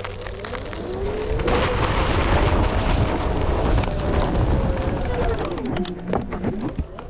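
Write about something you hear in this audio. An electric motor whines, rising and falling in pitch.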